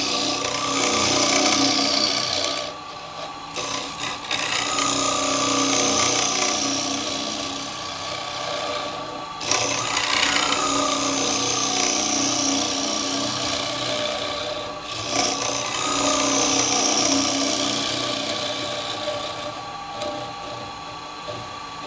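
A gouge cuts into spinning wood with a loud rushing scrape.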